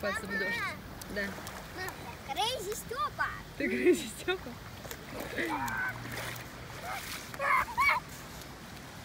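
A young child shouts and squeals nearby.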